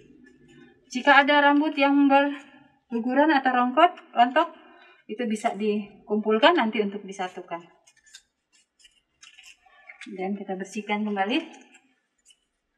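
A woman speaks calmly and clearly close by, explaining in short phrases.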